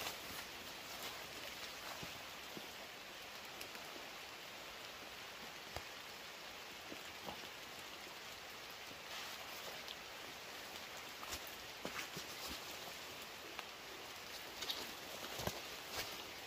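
Leaves rustle as a man pushes through dense undergrowth.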